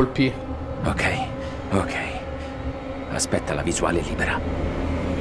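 A man speaks tensely and quietly.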